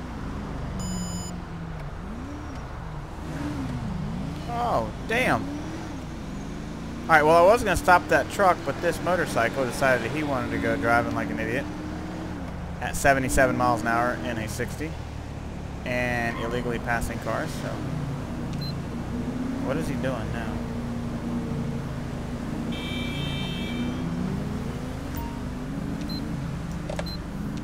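A car engine hums and revs steadily while driving at speed.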